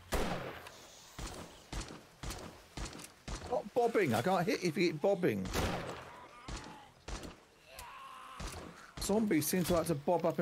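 A rifle fires repeated sharp shots.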